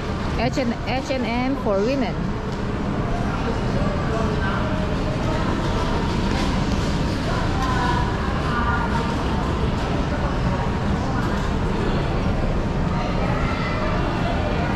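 A crowd of people murmurs and chatters at a distance in a large echoing hall.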